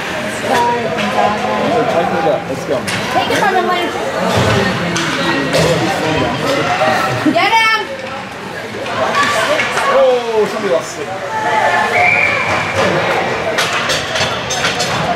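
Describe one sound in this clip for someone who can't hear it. A crowd chatters and shouts in an echoing rink.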